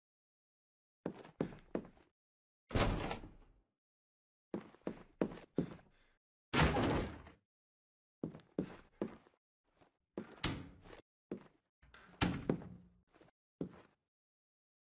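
Footsteps echo on a hard floor.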